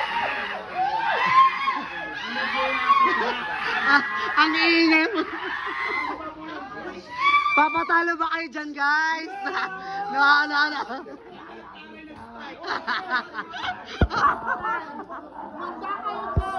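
Young people shout and laugh excitedly close by.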